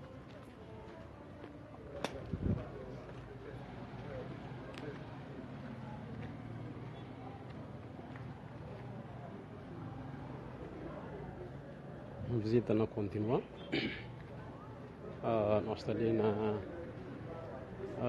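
Street noise murmurs steadily in the distance outdoors.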